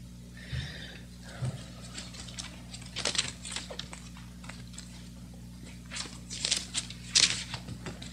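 Book pages rustle as a man turns them.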